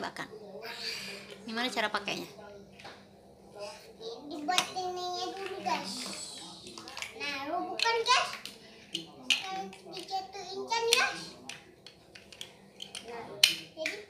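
Plastic toy blocks click and clatter.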